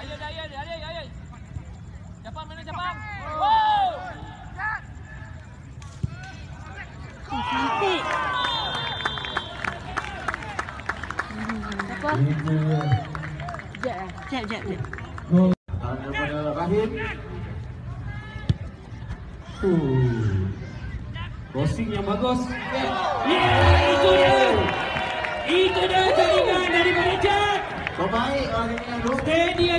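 Young men shout across an outdoor football pitch.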